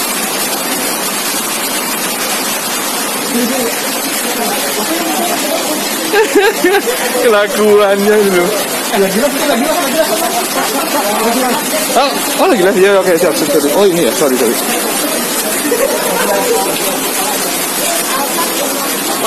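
Heavy rain falls outdoors.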